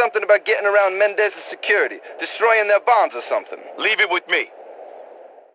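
A man speaks calmly at close range.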